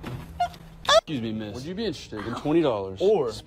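A young man talks.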